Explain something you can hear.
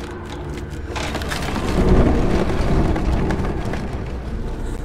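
A heavy stone door grinds and rumbles open.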